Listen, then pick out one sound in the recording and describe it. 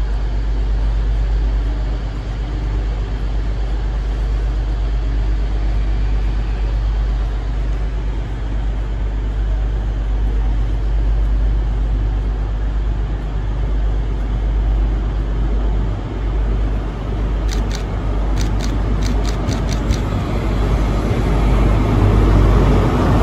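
Idling diesel trains hum steadily and deeply under an echoing roof.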